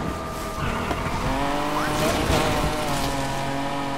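Tyres screech as a car drifts around a corner.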